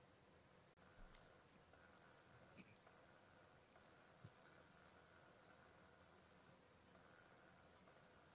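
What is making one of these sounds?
A wooden stick scrapes and taps against a plate.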